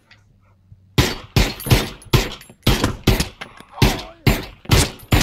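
A gun fires shot after shot in quick succession.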